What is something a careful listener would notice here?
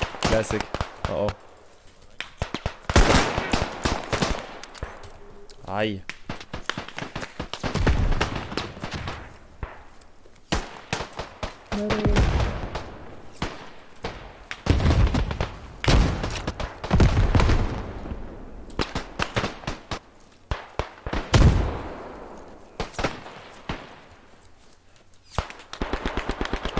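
Gunshots and explosions crack and boom all around.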